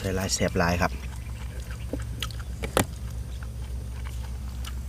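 Food crunches and smacks as someone eats up close.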